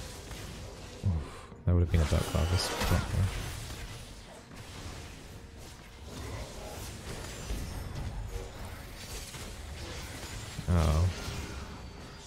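Game sound effects of spells and hits burst out.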